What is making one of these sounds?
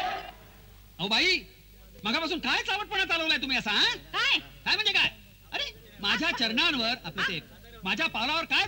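An elderly man speaks with animation, close by.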